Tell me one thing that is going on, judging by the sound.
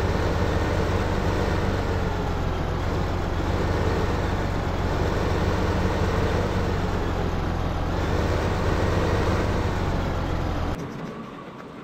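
A tractor engine rumbles steadily as the tractor drives.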